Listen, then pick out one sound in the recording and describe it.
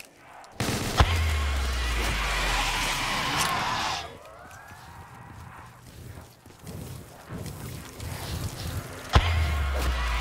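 Single gunshots crack sharply now and then.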